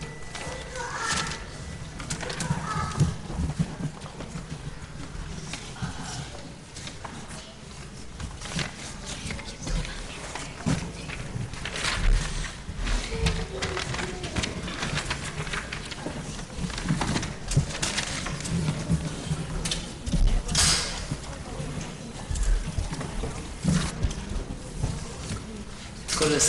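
Footsteps shuffle and knock on the floor as people move about.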